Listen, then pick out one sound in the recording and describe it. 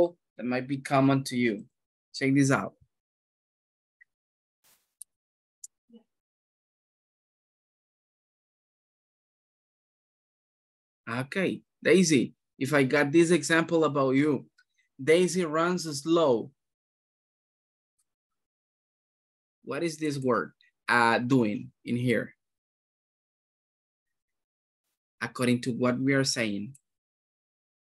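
A man speaks calmly over an online call, explaining in short bursts with pauses.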